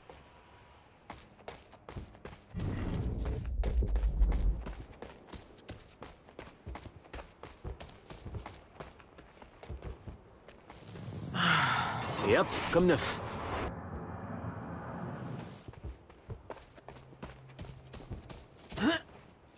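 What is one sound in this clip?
Footsteps run quickly over rough ground.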